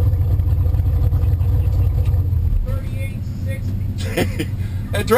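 A car engine idles with a deep, throbbing rumble, heard from inside the car.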